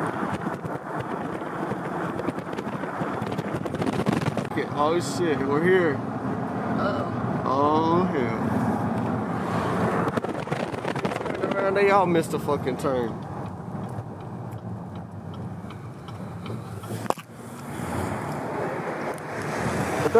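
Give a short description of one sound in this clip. A car engine hums and tyres roll on the road while driving.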